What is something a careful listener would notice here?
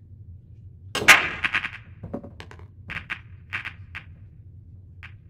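Pool balls clack together as a break scatters the rack.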